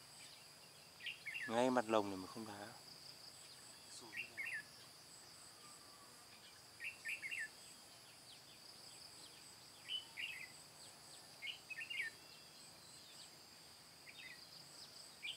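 Small birds chirp in short, quick bursts nearby.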